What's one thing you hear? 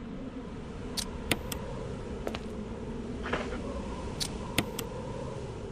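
Menu selections click softly.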